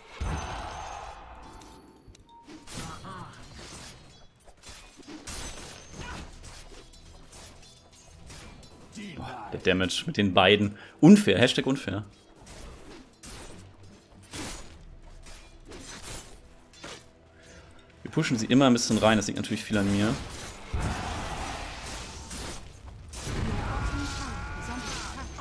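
Fantasy battle sound effects clash and burst in quick succession.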